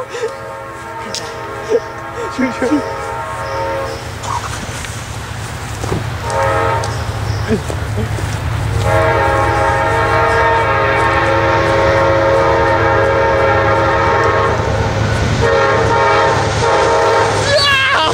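A train horn blows several long blasts as the train approaches.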